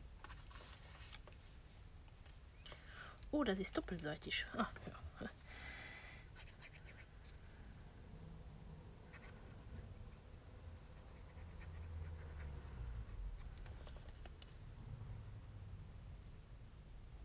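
Paper rustles as it is handled.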